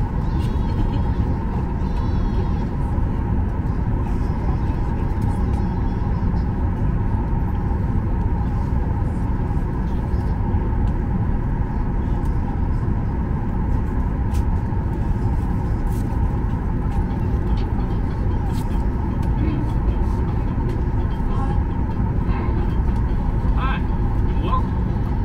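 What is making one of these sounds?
Jet engines roar steadily inside an airliner cabin as the plane taxis.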